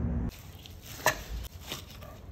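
A knife slices through roast meat.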